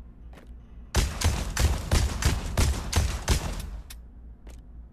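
A gun fires a rapid burst of loud shots that echo.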